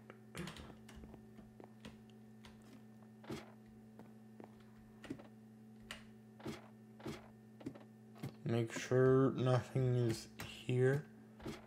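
Light knocks sound as someone climbs a wooden ladder.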